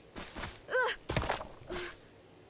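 A body thuds onto the ground.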